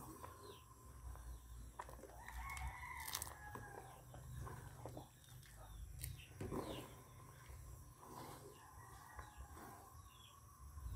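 A spoon stirs and scrapes against the side of a pot.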